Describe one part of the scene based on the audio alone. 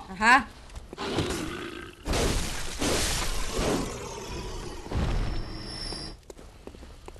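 Heavy weapons swing and slash in a fight.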